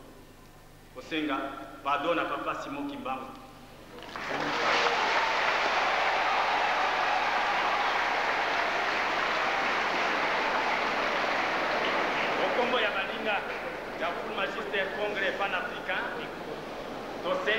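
A man speaks loudly into a microphone, heard through loudspeakers in an echoing hall.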